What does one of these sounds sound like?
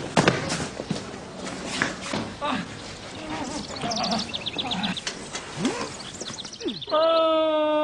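Men scuffle with thumps and knocks close by.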